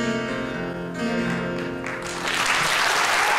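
An acoustic guitar is strummed and picked up close.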